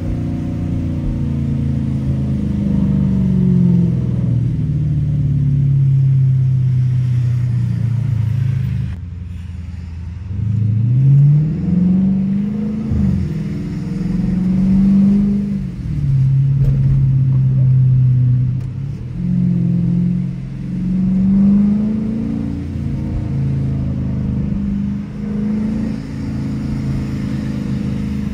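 Tyres hiss on a wet road.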